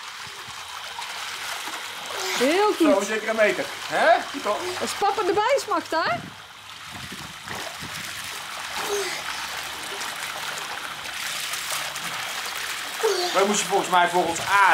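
Water splashes as a child swims.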